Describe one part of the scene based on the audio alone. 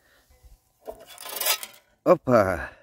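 A metal lid scrapes and clatters against a pot.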